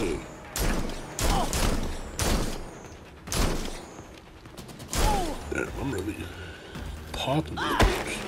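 Pistols fire in quick bursts of sharp shots.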